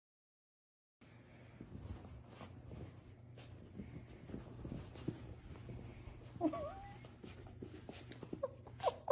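A blanket rustles as a dog wriggles underneath it.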